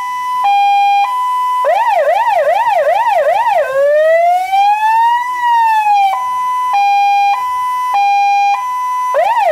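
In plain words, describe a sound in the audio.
A fire engine siren sounds close by, switching between a two-tone call, a fast yelp and a slow wail.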